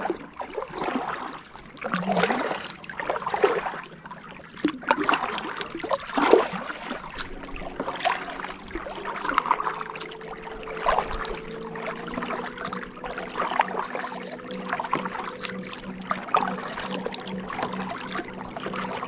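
Oars splash and dip into the water in a steady rhythm.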